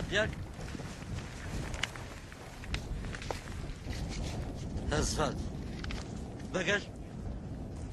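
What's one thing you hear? A man in a car answers calmly.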